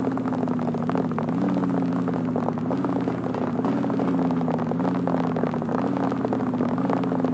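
A car engine hums steadily as the car drives down a street.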